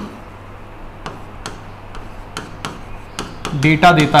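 A pen taps on a board.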